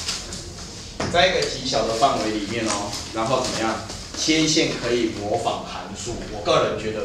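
A man speaks clearly and calmly, lecturing.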